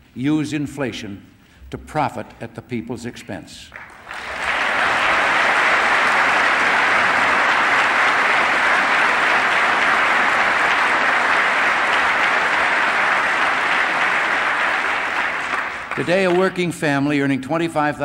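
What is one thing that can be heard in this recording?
An elderly man speaks calmly and firmly into a microphone in a large hall.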